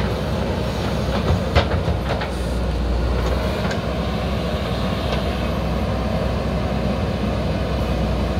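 A diesel engine of a digger rumbles steadily close by.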